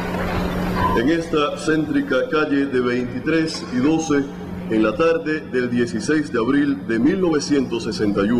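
A young man speaks formally through a loudspeaker system.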